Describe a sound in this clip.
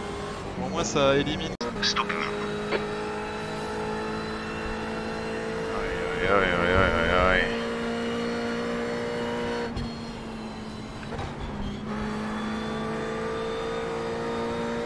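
A racing car engine hums steadily.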